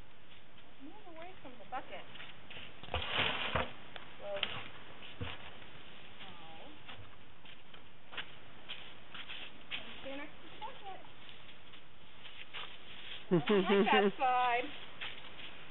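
A woman talks close by, outdoors.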